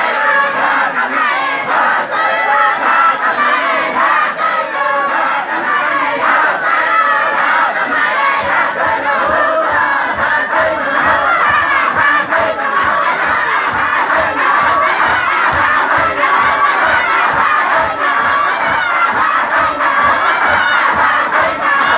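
A large crowd of men chants together loudly outdoors.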